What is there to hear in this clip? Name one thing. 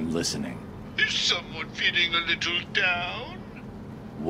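A man speaks over a phone with a mocking, sing-song voice.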